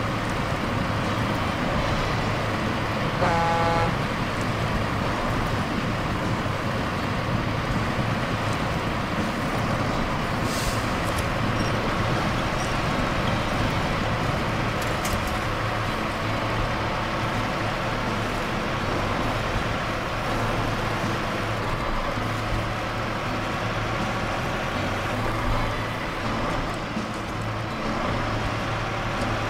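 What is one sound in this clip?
Tyres crunch over rough ground.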